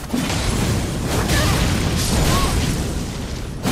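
Flames whoosh and crackle in a sweeping burst.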